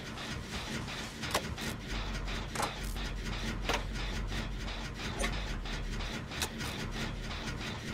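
A generator clanks and rattles mechanically.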